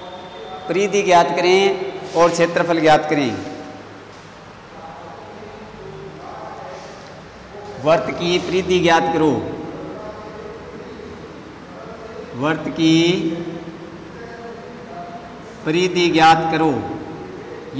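A man speaks calmly in short phrases through a close microphone, with pauses between them.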